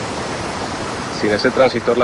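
A man speaks quietly up close.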